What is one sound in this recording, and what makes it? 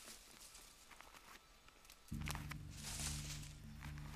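Branches creak and rustle as a man climbs a tree.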